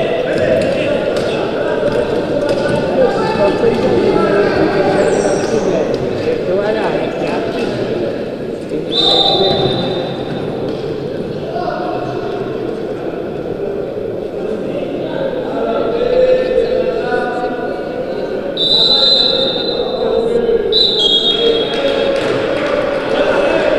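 Wheelchairs roll and clatter across a wooden floor in a large echoing hall.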